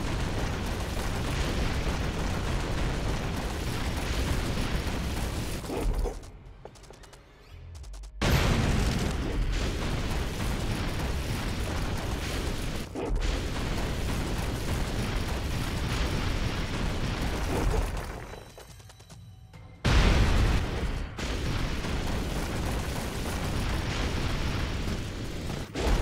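A machine gun fires in rapid, rattling bursts.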